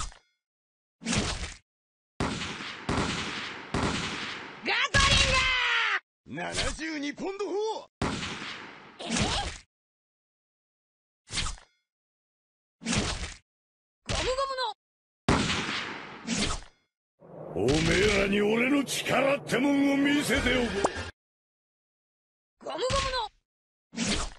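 Game sound effects of hits and slashes burst out in quick bursts.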